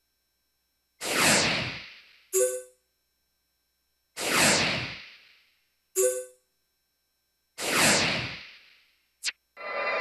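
A bright whooshing chime swells and fades.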